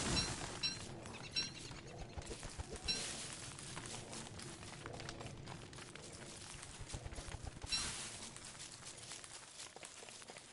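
Soft footsteps patter quickly on dirt.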